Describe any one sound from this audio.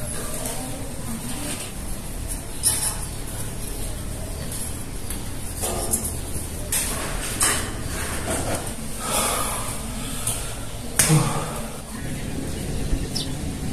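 Footsteps climb stairs.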